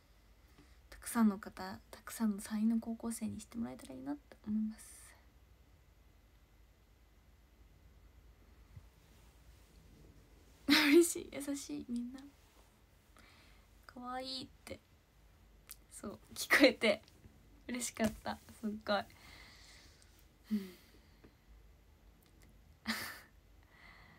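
A young woman talks calmly and close by, in short bursts.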